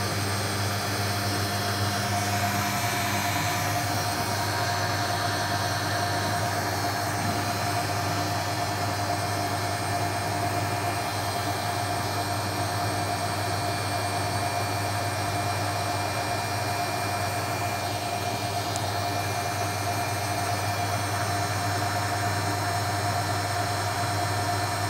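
Water sloshes and splashes inside a washing machine drum.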